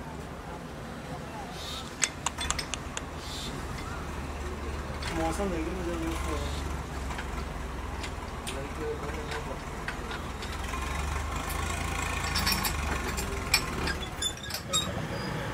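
Metal gears clank and click.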